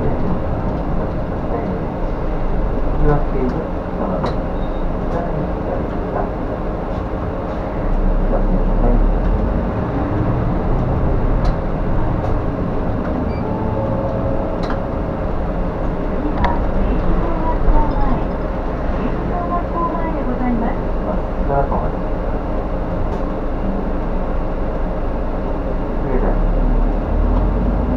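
The bus body rattles and clicks over the road.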